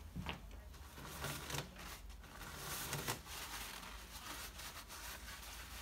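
Paper towels are pulled from a dispenser and rustle.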